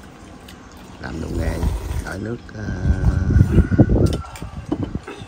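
Men slurp noodles loudly.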